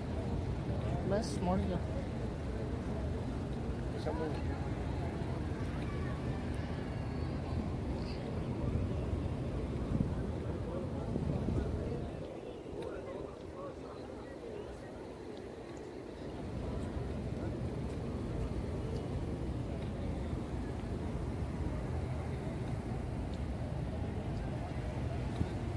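A crowd murmurs faintly in the open air.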